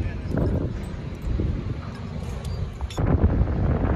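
Boots clank on a metal grating walkway.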